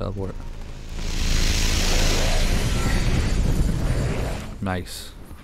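A loud whooshing rush of energy roars and fades.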